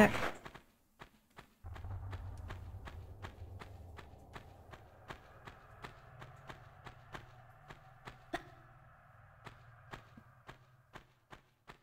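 Footsteps tap quickly and evenly on stone.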